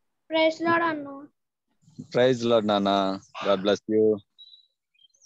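A boy speaks over an online call.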